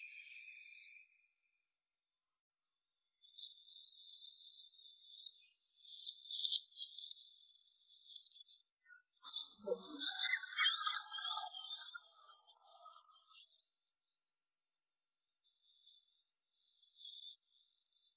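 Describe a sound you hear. Leaves and grass rustle as hands pick plants.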